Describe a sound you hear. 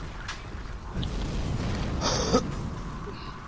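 Fire bursts and roars in a blast.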